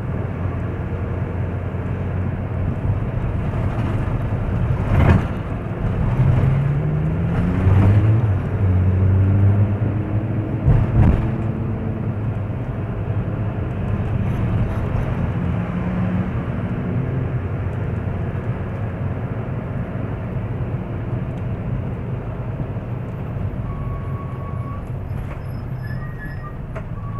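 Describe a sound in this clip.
Tyres roll on a paved road.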